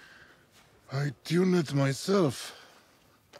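A man speaks calmly outdoors.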